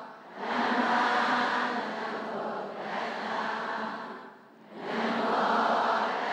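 A large group of young women chant together in unison, echoing through a large hall.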